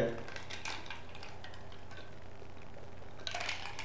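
A young man sips a drink.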